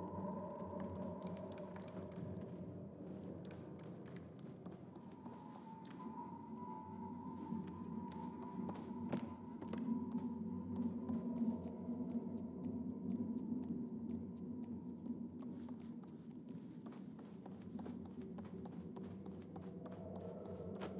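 Small, light footsteps patter on wooden floorboards.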